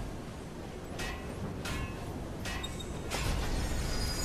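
Heavy metal clanks and knocks several times.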